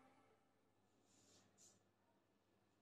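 Hands and feet shift softly on a mat.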